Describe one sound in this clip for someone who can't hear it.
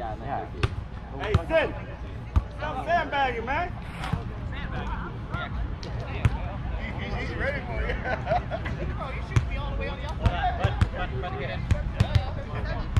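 A volleyball is hit with dull thumps.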